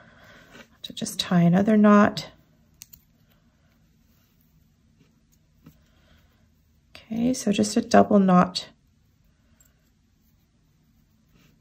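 Paper rustles softly as hands fold it.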